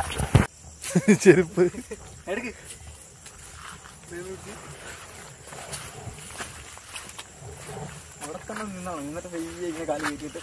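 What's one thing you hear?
A man talks nearby in the open air.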